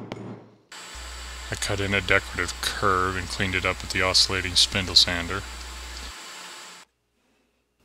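A spindle sander grinds against wood.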